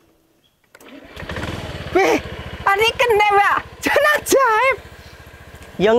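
A motorbike engine starts and idles with a steady putter.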